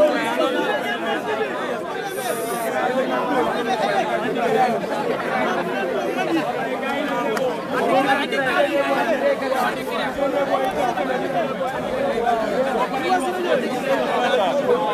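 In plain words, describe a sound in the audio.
A dense crowd of men talks and shouts all around, close by.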